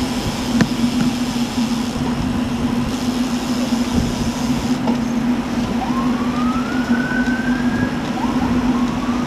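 Wind rushes loudly past, outdoors.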